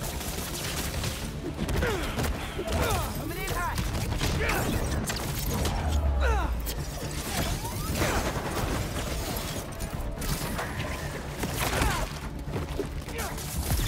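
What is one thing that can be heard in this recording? Punches and kicks thud and smack in a fast fight.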